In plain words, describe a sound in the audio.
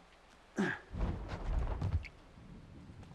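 Boots land with a heavy thud on wooden boards.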